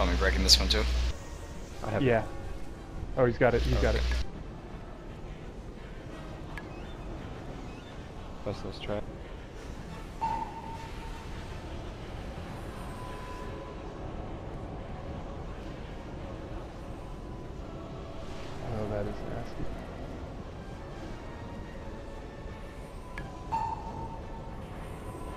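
Magic spells whoosh and chime in a battle.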